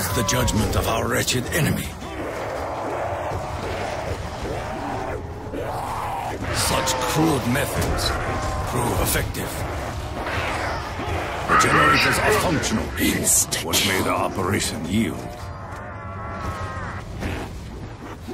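Energy weapon blasts crackle and boom in rapid bursts.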